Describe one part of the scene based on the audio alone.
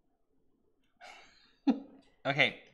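An elderly man laughs heartily.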